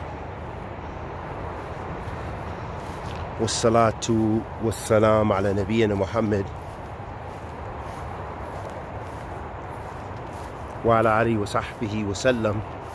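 Wind rustles through trees outdoors.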